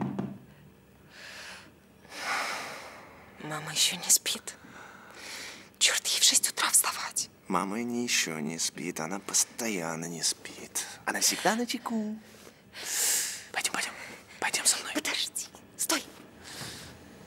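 A man speaks softly up close.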